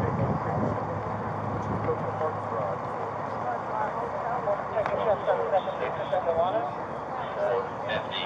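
A crowd of people talks at once nearby, outdoors.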